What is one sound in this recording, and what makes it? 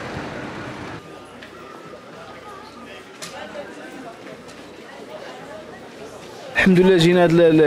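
Shoppers murmur softly in a busy indoor passage.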